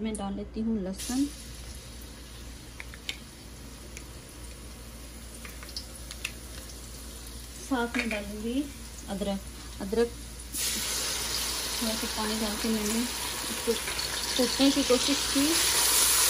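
Food sizzles and crackles in hot oil.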